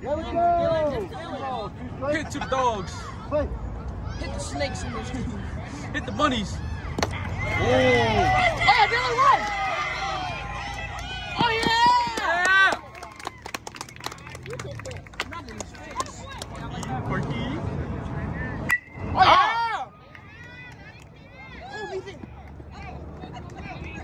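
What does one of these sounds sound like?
Young players shout and cheer nearby.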